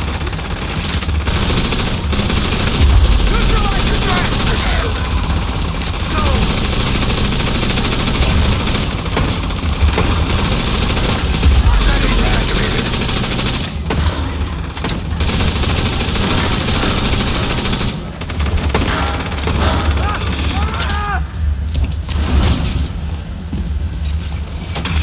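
Gunshots crack repeatedly in a loud firefight.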